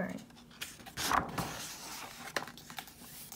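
A paper page rustles and flaps as it is turned.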